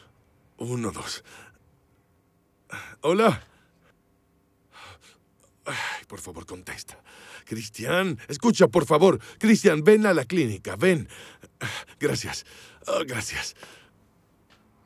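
A middle-aged man talks loudly and urgently into a phone, close by.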